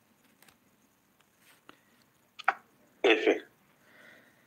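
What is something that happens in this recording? A small figurine's base scrapes and knocks on a hard surface.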